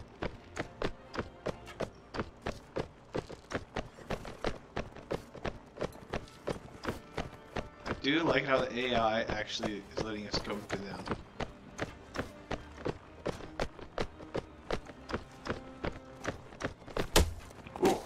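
Horse hooves thud in a quick, steady gallop.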